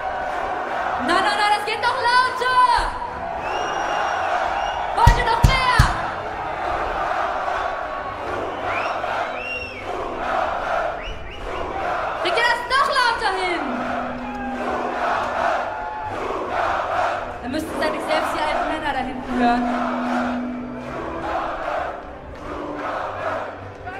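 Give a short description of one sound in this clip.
A young woman sings into a microphone over loud speakers in a large echoing hall.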